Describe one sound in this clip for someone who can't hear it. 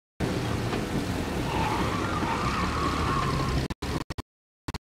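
Tyres skid on a wet road.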